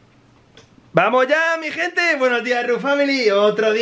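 A toy gives out a loud, warbling, squeaky sound.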